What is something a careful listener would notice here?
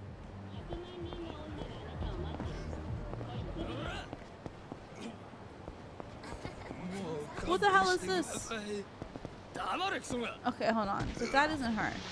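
A man groans and grunts in pain.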